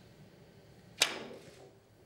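A cue sharply strikes a billiard ball.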